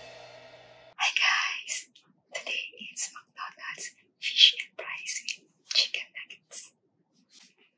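A young woman speaks cheerfully and closely into a microphone.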